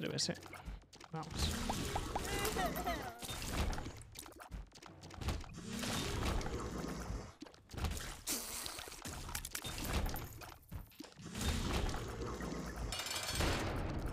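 Cartoonish shots pop and splatter rapidly amid monster sounds.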